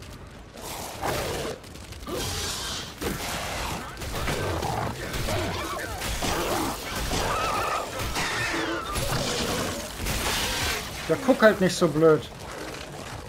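Monsters snarl and growl close by.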